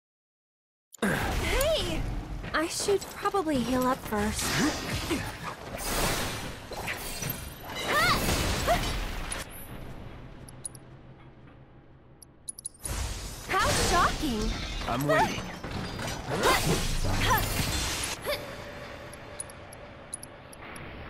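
Magical attacks crackle and whoosh in a video game battle.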